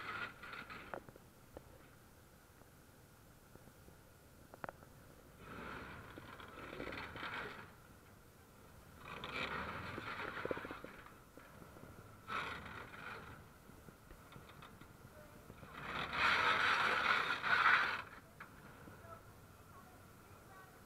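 Tank tracks clank and grind over sand.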